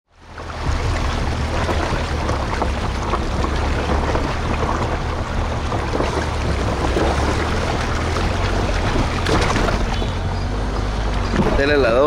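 A car engine hums low and steady.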